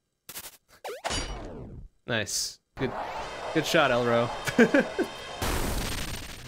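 A young man talks and laughs with animation close to a microphone.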